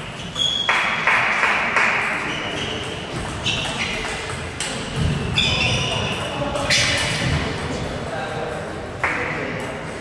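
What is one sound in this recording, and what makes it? A table tennis ball clicks back and forth between paddles and the table in a large echoing hall.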